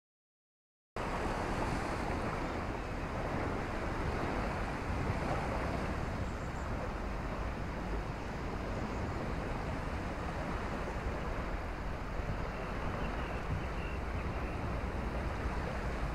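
Wind blows outdoors, rumbling steadily.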